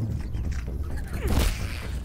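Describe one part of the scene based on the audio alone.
A weapon whooshes through the air.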